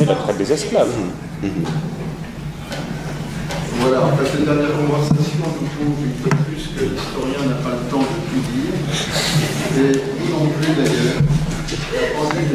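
A man speaks calmly into a microphone in an echoing room.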